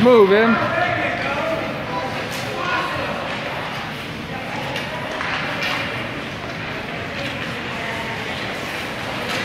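Young children shout and call out.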